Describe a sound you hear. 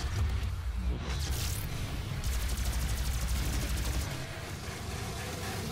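Deep rumbling booms roll on.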